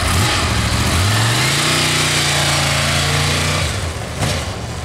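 A motorcycle engine revs up and pulls away.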